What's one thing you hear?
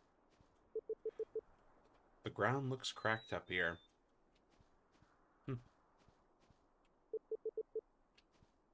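Quick soft beeps tick in a short burst as text types out.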